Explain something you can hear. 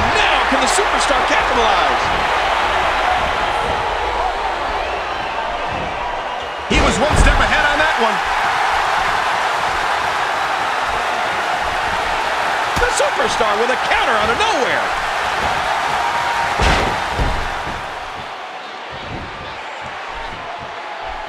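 A crowd cheers and roars steadily in a large arena.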